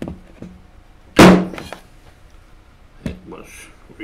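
A hollow plastic object knocks onto a table.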